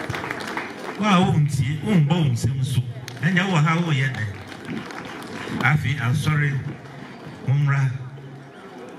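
A man speaks loudly into a microphone, heard through loudspeakers.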